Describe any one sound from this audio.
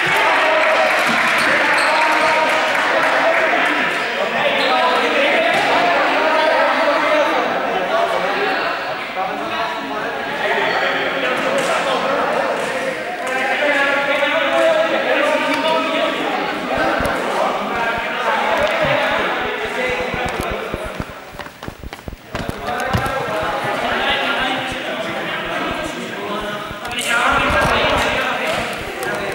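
Sneakers squeak and patter on a hard hall floor.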